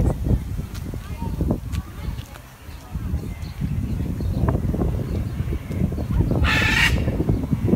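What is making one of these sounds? A large bird's feet patter softly on grass.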